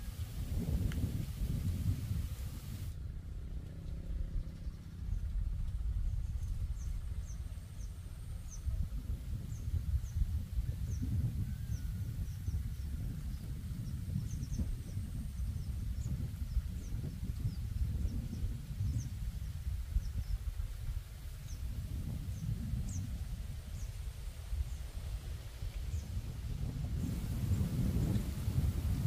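Wind blows across the microphone outdoors with a low rumble.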